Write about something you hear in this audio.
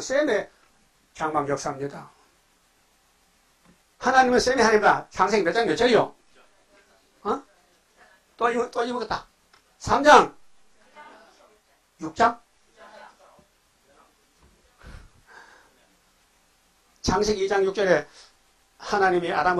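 An elderly man preaches forcefully into a microphone, with pauses between phrases.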